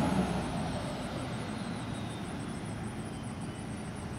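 A pickup truck drives by on the road.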